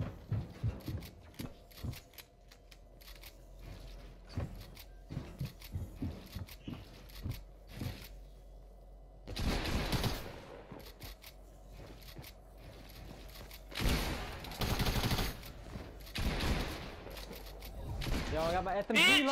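Gunshots and building clatter sound in a video game.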